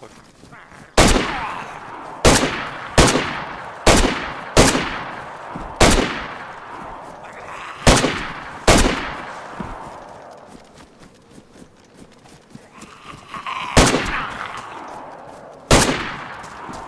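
A rifle fires single loud shots that echo over open ground.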